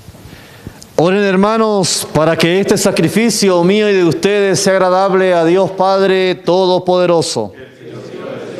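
A man sings a chant through a microphone in a reverberant room.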